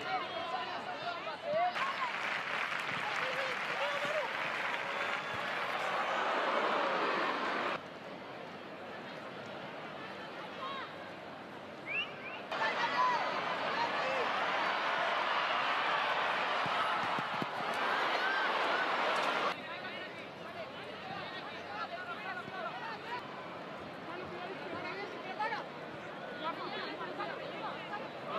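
A large stadium crowd murmurs steadily outdoors.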